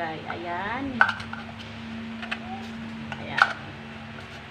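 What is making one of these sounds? Plastic pot parts click and knock together.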